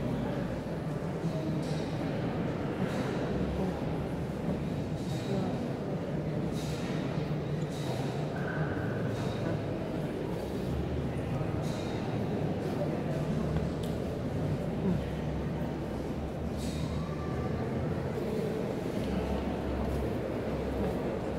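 Footsteps shuffle slowly on a stone floor.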